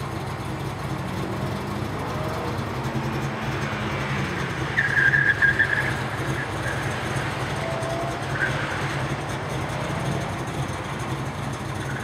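A sports car engine revs and roars as the car weaves through a course outdoors.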